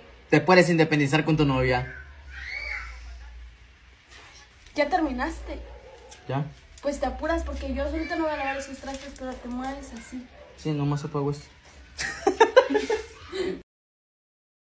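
A young man speaks and laughs close by.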